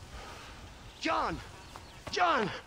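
A man calls out loudly from a distance.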